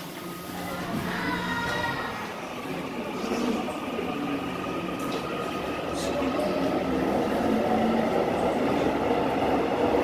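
An electric commuter train pulls away with a rising motor whine.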